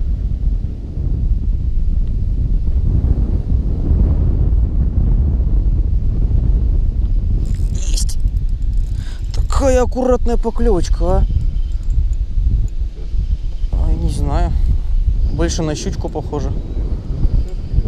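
Wind blows steadily and rumbles against the microphone outdoors.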